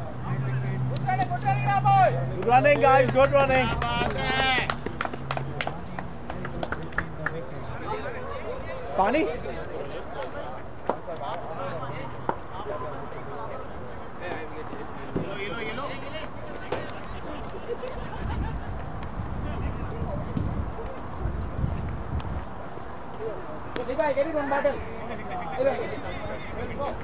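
Men call out and shout to each other outdoors at a distance.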